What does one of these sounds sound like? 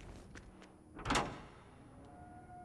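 A heavy metal door bangs open.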